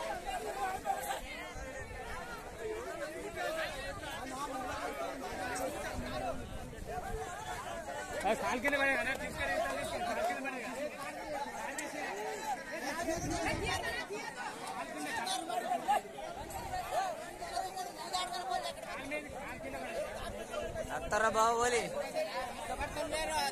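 A crowd of men talk and shout outdoors.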